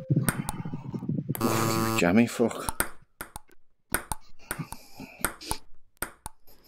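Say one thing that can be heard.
A ping pong ball clicks sharply off paddles and a table in quick exchanges.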